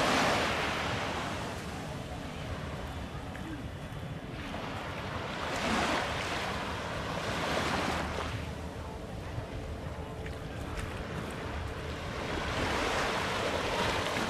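Small waves wash gently onto the shore in surges.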